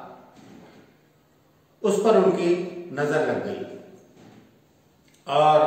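An older man speaks calmly and close to a microphone, in short phrases.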